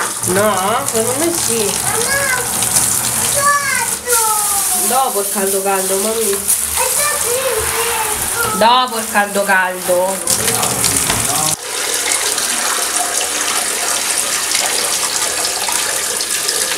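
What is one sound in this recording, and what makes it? Water runs steadily from a tap into a bathtub.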